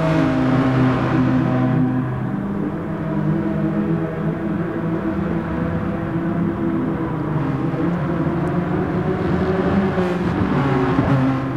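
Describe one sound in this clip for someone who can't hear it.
Racing car engines roar and whine as they shift through gears.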